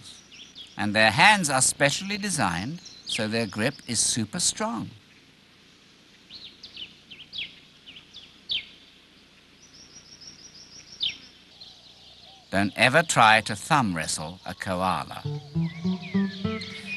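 A koala bellows with deep, rasping snorts close by.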